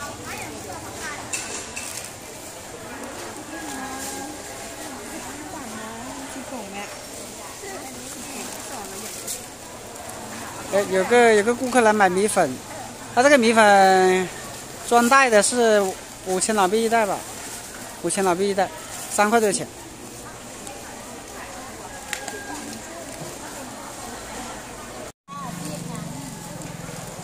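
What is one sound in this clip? Plastic bags rustle and crinkle as they are handled.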